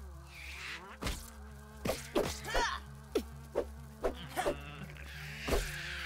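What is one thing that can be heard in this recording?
Sharp hits thud one after another as a weapon strikes.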